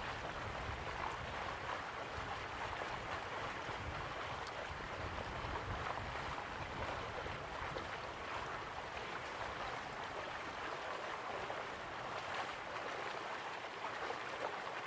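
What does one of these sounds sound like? A waterfall rushes steadily in the distance.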